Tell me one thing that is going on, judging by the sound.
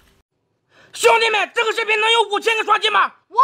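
A young man speaks loudly and with animation, close up.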